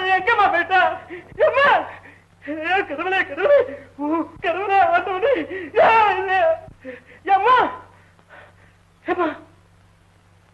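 A man shouts excitedly and close by.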